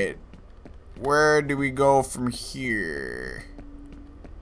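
A young man speaks briefly with animation into a close microphone.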